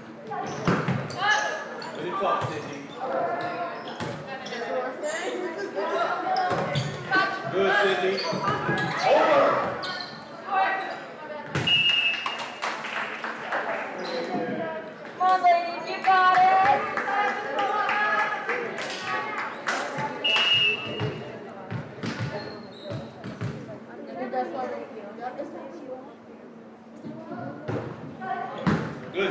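Players and spectators shout and cheer in a large echoing gym.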